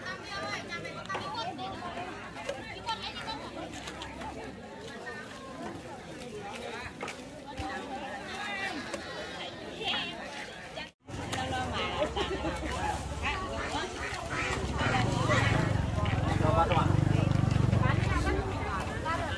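A busy outdoor market crowd chatters in the background.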